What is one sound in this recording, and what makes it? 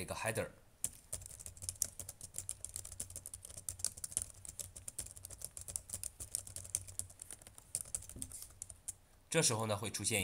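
Keyboard keys clatter in quick, light taps.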